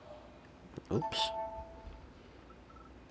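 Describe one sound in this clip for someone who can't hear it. A handheld game console plays a short electronic startup chime.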